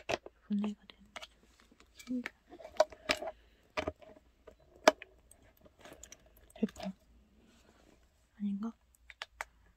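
A hand bumps and rubs against a plastic lamp.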